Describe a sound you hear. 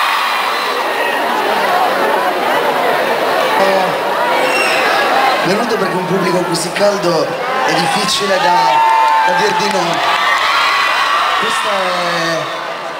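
A large crowd cheers and shouts in a big open space.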